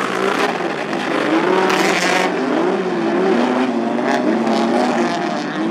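Tyres skid and spin on dirt.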